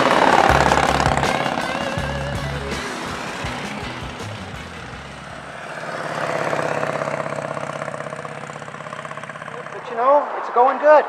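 Motorcycle engines rumble as they ride past outdoors.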